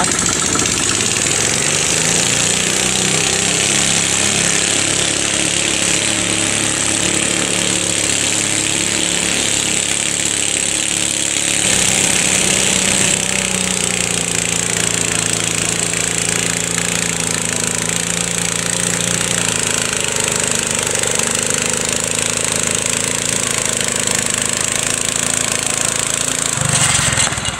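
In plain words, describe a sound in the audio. A small tractor engine roars loudly and steadily close by.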